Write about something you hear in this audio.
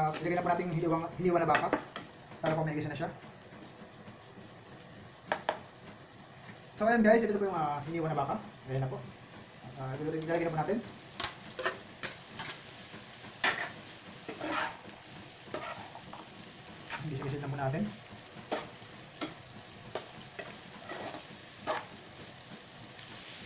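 A metal spatula scrapes and clacks against a frying pan.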